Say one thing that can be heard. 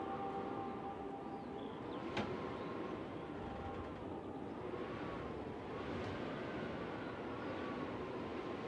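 A saxophone plays a slow, sustained melody in a reverberant hall.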